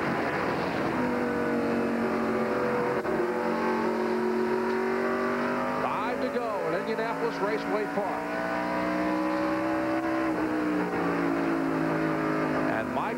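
A race car engine drones loudly from inside the car, its pitch rising and falling.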